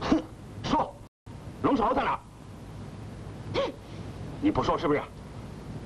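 A man speaks harshly and threateningly, close by.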